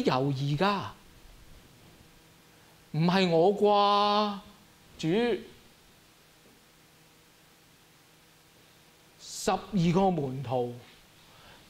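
A man speaks with animation through a microphone, in short phrases with long pauses.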